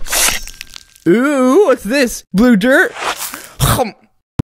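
A woman speaks in a high, squeaky cartoon voice with animation.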